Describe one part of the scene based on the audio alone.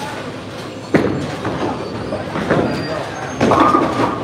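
A bowling ball thuds onto a lane and rolls away.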